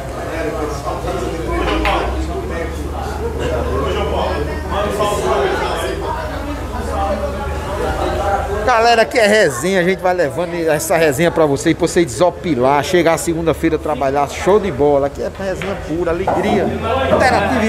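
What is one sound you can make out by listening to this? Billiard balls clack together on a table.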